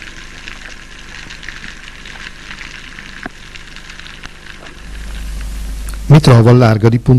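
Soft crackling and hissing fill the water.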